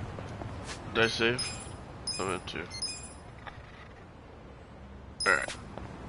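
Short electronic menu chimes sound as options are picked.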